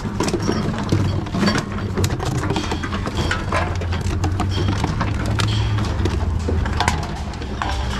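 A bottle return machine hums steadily.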